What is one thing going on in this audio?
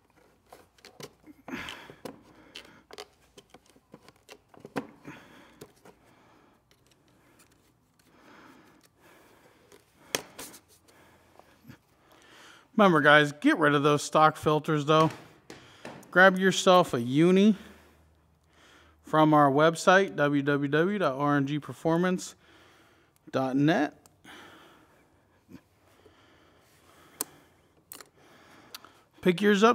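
Plastic parts click and rustle as a man handles them.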